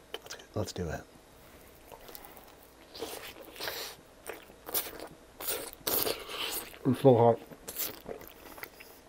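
A man bites and crunches on crispy food close to a microphone.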